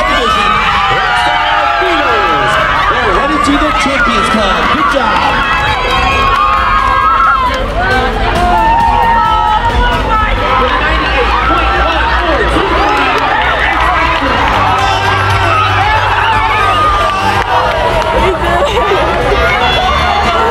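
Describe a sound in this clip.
A crowd of young women screams and cheers loudly in a large echoing arena.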